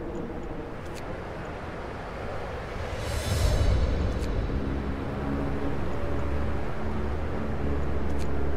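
Short interface clicks sound a few times.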